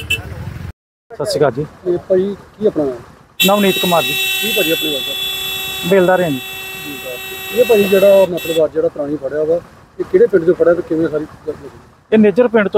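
A middle-aged man speaks calmly into a microphone outdoors.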